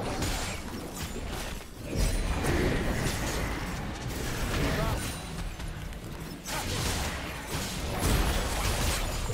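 Magic blasts and clashing weapon sounds burst in a fast fight.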